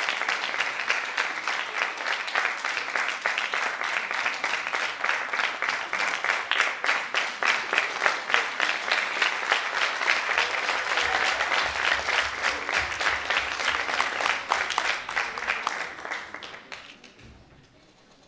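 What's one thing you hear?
An audience applauds in a large hall, with dense clapping.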